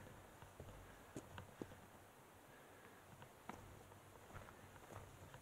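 Dirt and small stones crunch and knock underfoot on a trail.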